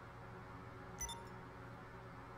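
A short electronic notification chime sounds.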